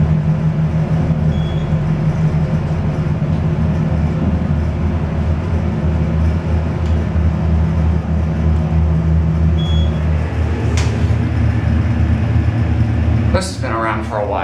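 An elevator motor hums steadily as the car moves.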